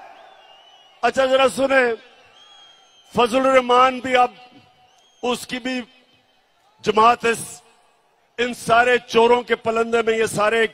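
A man speaks forcefully into a microphone over loudspeakers.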